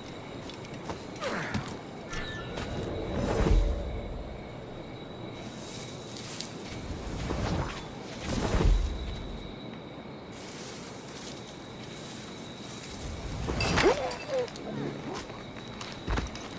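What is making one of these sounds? Footsteps rustle through tall grass and leaves.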